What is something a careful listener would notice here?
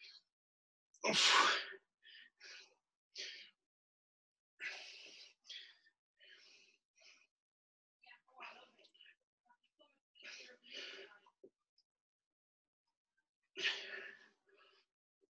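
A man breathes out hard with effort.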